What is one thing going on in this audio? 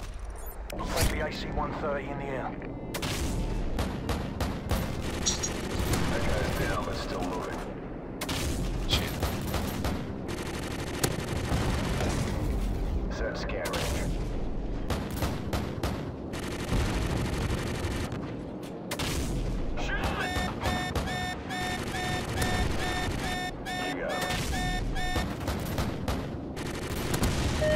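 Heavy cannon shots boom and explosions thunder again and again.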